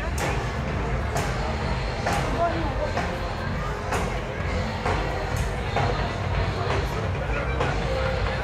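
Voices of passers-by murmur in a busy outdoor street.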